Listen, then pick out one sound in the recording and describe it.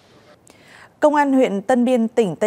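A woman reads out clearly through a microphone.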